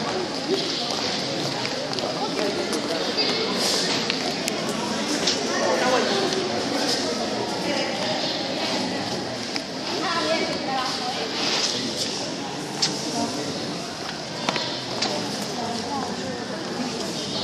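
Dancers' feet stamp and shuffle on a hard floor in a large echoing hall.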